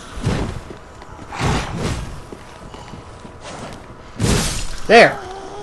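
Swords clash and swing in a video game fight.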